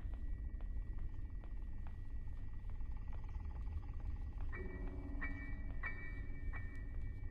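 Footsteps thud steadily across a floor.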